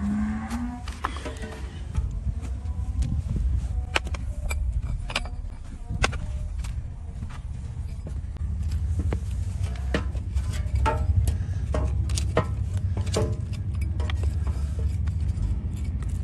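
A hammer strikes a blade, knocking sharply in repeated blows.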